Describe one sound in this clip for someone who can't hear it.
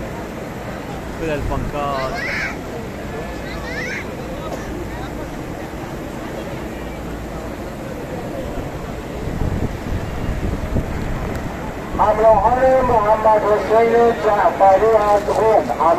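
A crowd murmurs and talks outdoors.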